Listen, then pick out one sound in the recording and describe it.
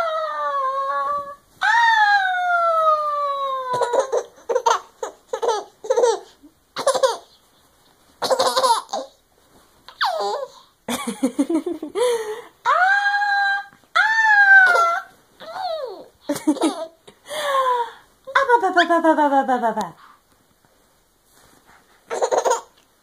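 A baby coos and babbles close by in a high voice.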